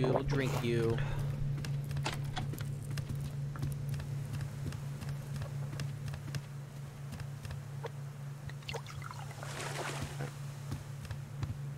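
Footsteps thud on a wooden deck.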